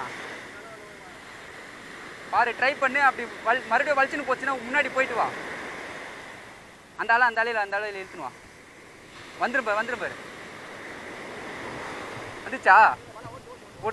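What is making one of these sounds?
Waves break and wash up on a beach.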